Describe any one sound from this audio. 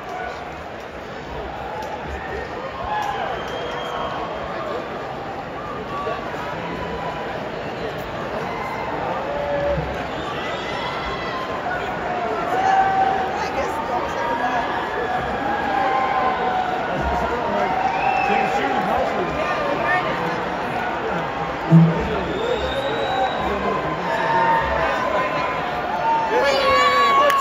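A large crowd cheers and sings along nearby.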